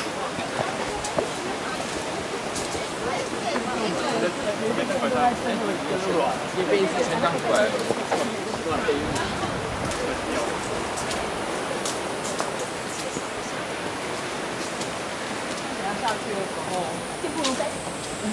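A group of young people chat as they walk outdoors.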